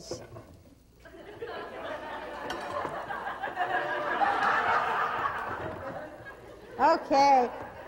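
Food sizzles and crackles in a hot pan.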